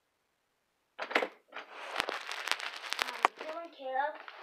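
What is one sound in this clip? A sheet of paper rustles and crinkles.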